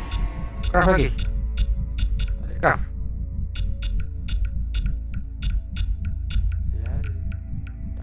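Soft electronic ticks sound quickly one after another as a menu selection moves.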